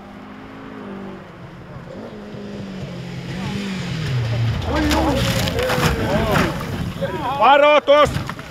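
A rally car engine roars and revs hard as it approaches.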